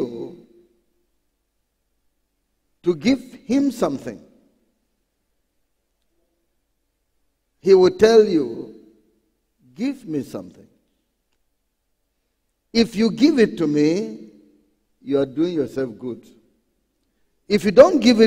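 A middle-aged man preaches forcefully through a microphone, pausing between phrases.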